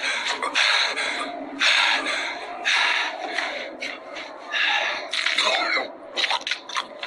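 A man shouts in pain, straining and panting.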